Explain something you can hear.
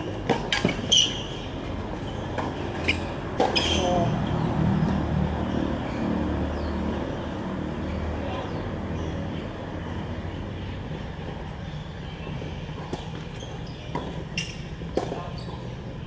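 A tennis ball is struck with a racket, with sharp pops.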